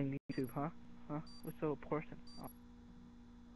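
A short electronic beep sounds once each second, counting down.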